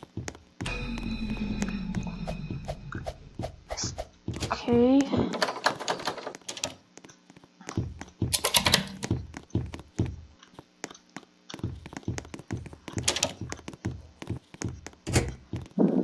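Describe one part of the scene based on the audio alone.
Footsteps tap quickly on a wooden floor.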